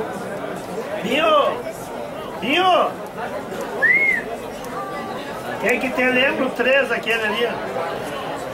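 Players call out to each other from a distance.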